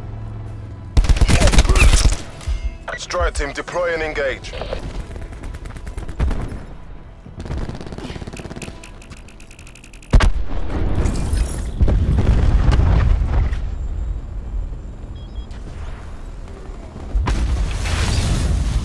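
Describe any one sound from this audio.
An automatic gun fires in rattling bursts.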